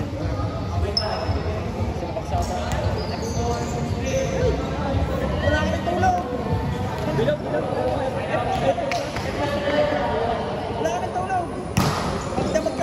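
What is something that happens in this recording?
A volleyball is struck by hand with a sharp slap.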